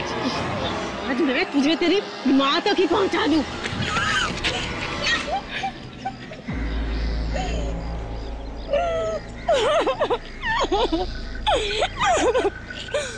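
A woman cries out and sobs in distress.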